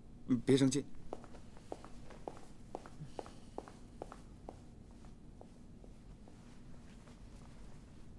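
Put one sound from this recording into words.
Footsteps walk away.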